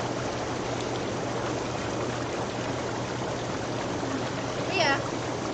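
A hot tub's pump hums steadily.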